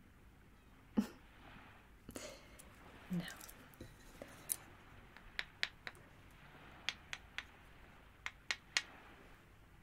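A wooden stick taps lightly on a metal frame.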